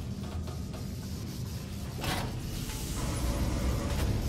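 A heavy metal vault door rumbles open.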